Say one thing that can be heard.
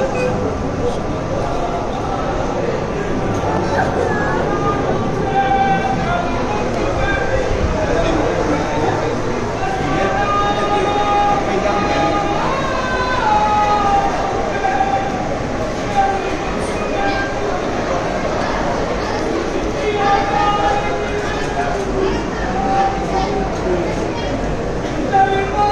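A crowd of men murmurs and chants in a large echoing hall.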